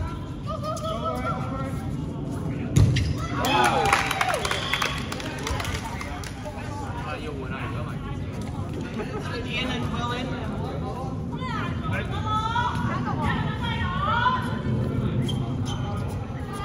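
Rubber soles squeak on the floor.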